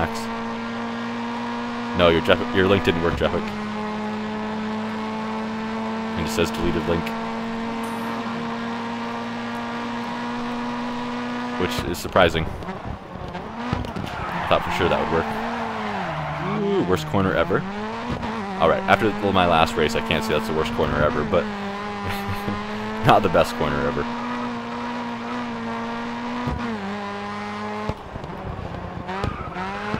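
A racing car engine drones at high revs and shifts gears.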